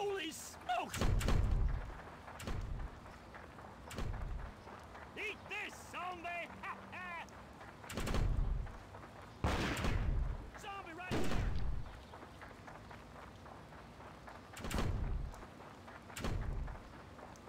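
Heavy footsteps thud on soft ground.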